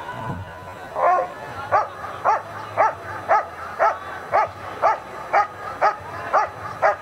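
A dog barks loudly and repeatedly, close by, outdoors.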